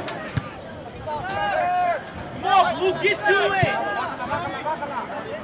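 Spectators cheer and shout in the open air.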